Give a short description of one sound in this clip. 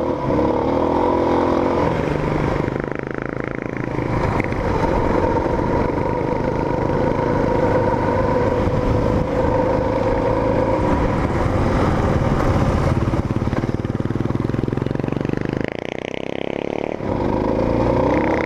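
Wind buffets loudly past the rider.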